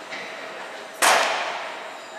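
A wooden seesaw bangs down loudly in an echoing hall.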